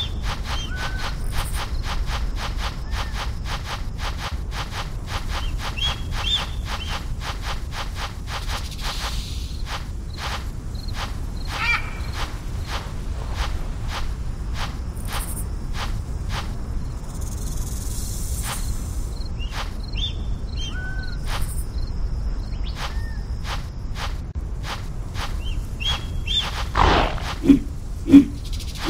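Paws patter quickly and steadily on the ground.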